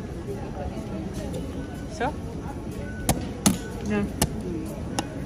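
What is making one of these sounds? A plastic flap on a machine clicks and knocks as a hand pushes it.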